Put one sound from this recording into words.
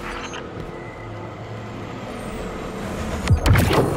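A portal hums and whooshes loudly.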